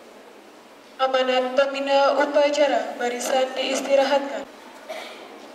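A young girl reads out through a microphone and loudspeaker.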